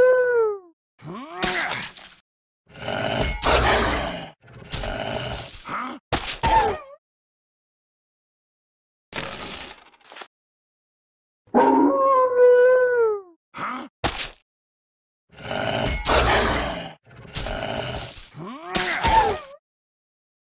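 A sword slashes and strikes.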